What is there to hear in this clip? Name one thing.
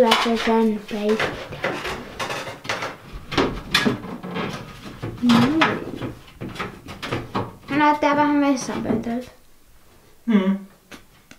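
A plastic vent cover knocks and scrapes against a wooden ceiling.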